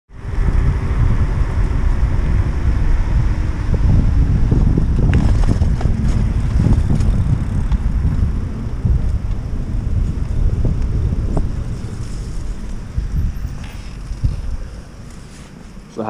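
Wind buffets the microphone loudly as a bike rides along.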